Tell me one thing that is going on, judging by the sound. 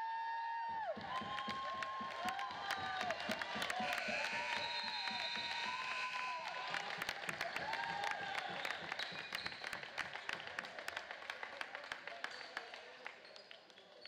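Hands clap in applause.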